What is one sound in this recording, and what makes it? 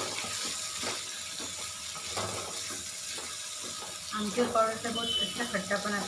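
A metal spatula scrapes and stirs vegetables in a metal pan.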